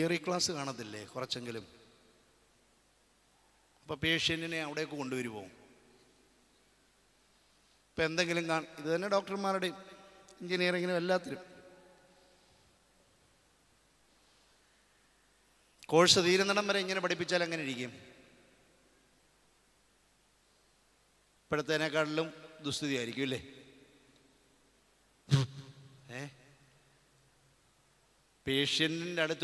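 A middle-aged man preaches with animation into a microphone, in bursts separated by pauses.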